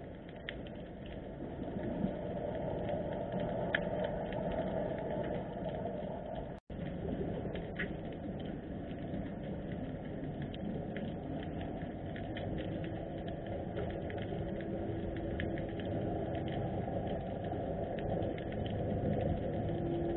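Water rumbles low and muffled, with faint crackling clicks, as if heard underwater.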